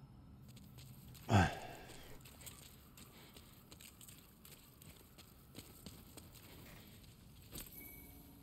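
Footsteps run quickly over stone.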